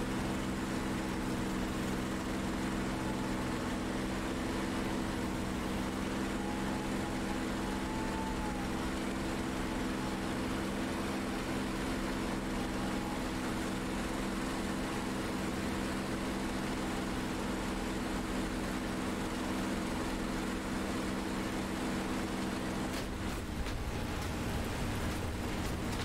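A propeller plane's engine drones loudly and steadily.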